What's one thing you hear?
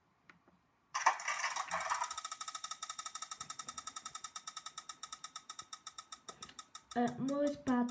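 A game's prize reel clicks rapidly as it spins, slowing down.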